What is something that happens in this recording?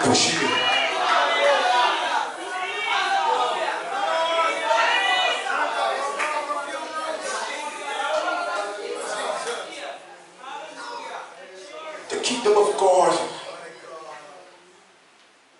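A crowd of men and women chatter and murmur in an echoing hall.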